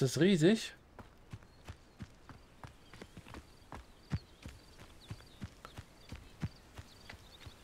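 Footsteps fall on grass and stone.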